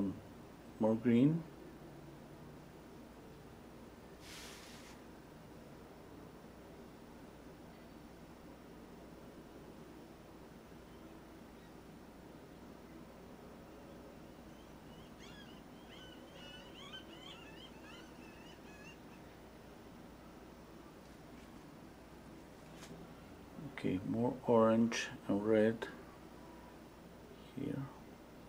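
A paintbrush softly brushes across a canvas.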